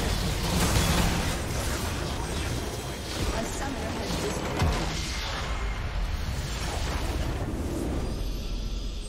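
A large structure explodes and crumbles with a loud roaring blast.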